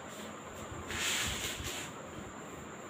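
A duster rubs briefly across a whiteboard.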